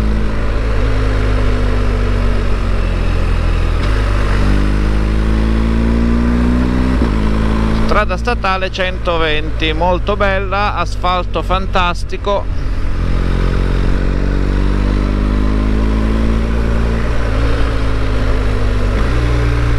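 A motorcycle engine hums steadily and changes pitch as the rider shifts gears.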